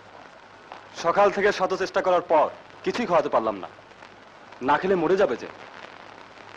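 A man speaks forcefully nearby.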